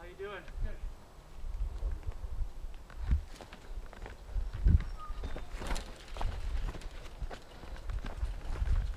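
A bicycle rattles and clatters over bumps.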